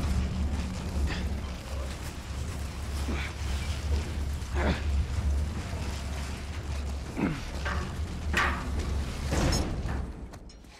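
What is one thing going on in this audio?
Metal wheels squeak and squeal now and then.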